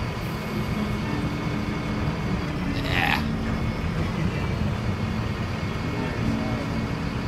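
Traffic rumbles steadily outdoors.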